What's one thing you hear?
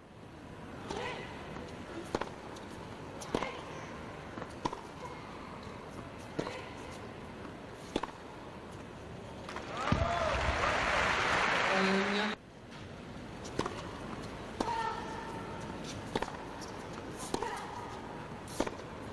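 A tennis ball is struck with sharp pops, back and forth.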